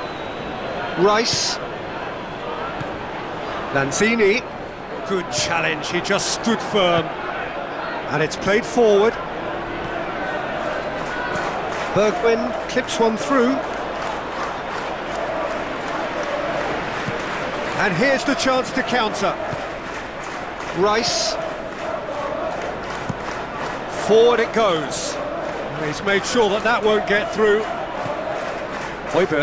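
A large stadium crowd murmurs and roars steadily in the distance.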